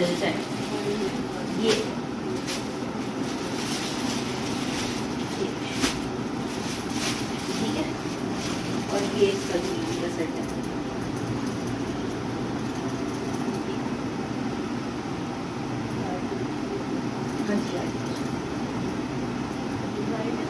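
Plastic bags and cloth rustle as they are handed over.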